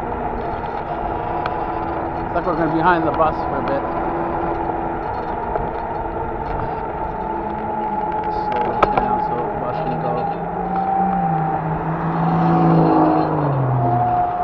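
A car engine hums while driving.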